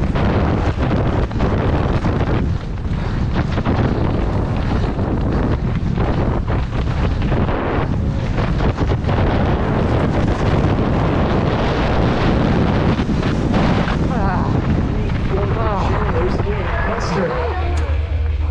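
Wind roars loudly past a fast-moving rider.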